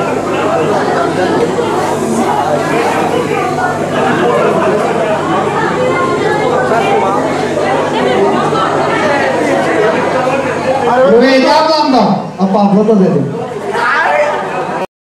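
A crowd of men and women chatters indoors.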